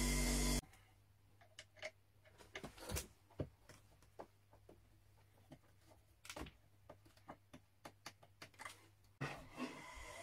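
Small metal parts click and tap during an adjustment.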